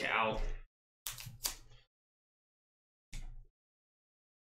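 A plastic card case clicks and rattles as it is handled.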